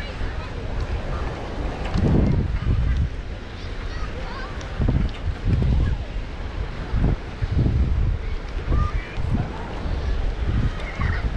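Wind buffets the microphone outdoors in strong gusts.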